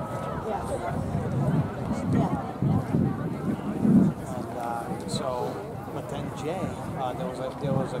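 Young people chat and call out nearby outdoors.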